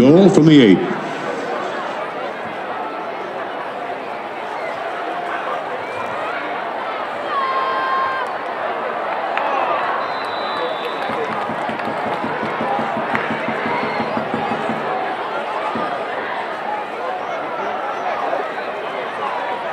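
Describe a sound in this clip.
A crowd cheers and chatters loudly outdoors.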